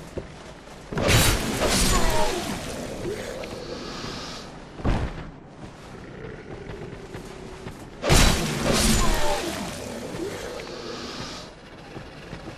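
A sword slashes and strikes an enemy with heavy blows.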